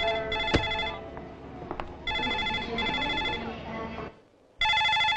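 A crowd murmurs and footsteps echo in a large hall.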